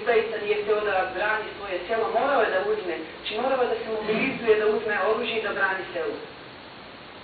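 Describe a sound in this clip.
A middle-aged woman speaks with animation through a microphone in a large hall.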